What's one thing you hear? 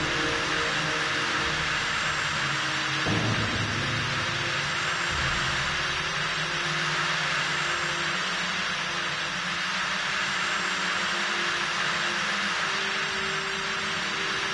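A power tool whirs steadily.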